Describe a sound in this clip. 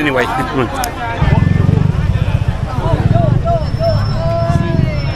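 A crowd chatters on a busy street outdoors.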